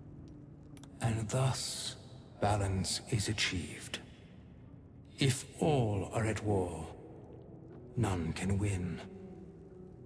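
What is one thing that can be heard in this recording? A man speaks slowly in a low voice.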